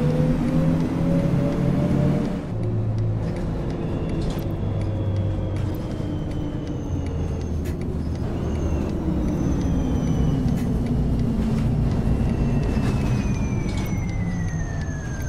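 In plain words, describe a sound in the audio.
A bus engine hums steadily and changes pitch as the bus slows.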